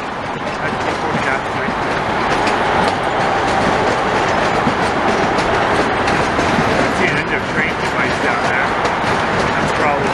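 Diesel locomotives rumble steadily in the distance.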